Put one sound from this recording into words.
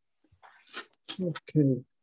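Paper rustles as it is peeled and handled.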